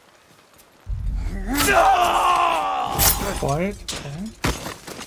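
A man cries out and groans as he is struck down.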